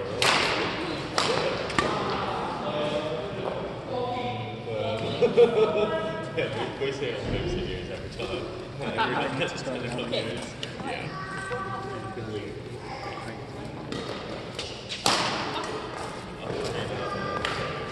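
Shuttlecocks are struck with rackets, with sharp pops echoing in a large hall.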